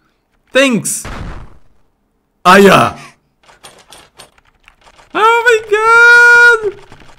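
A young man exclaims loudly and with animation into a close microphone.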